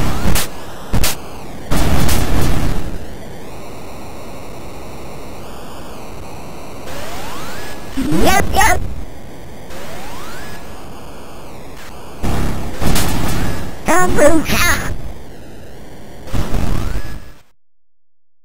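Chiptune game music plays with bleeping electronic tones.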